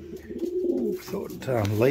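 Wings flap briefly as a pigeon flutters.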